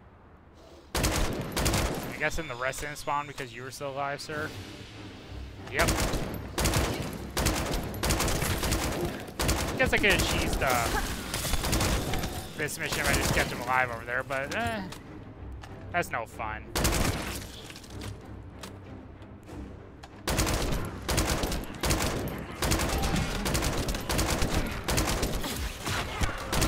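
Metal clangs and impacts crash.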